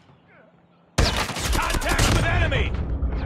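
A sniper rifle fires a loud, booming shot that echoes away.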